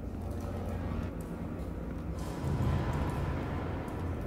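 Heavy footsteps thud on a hard floor.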